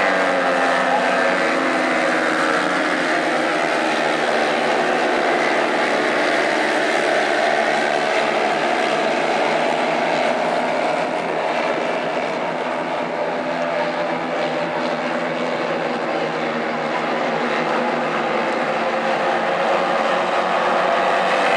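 Small race car engines roar and whine around a dirt track.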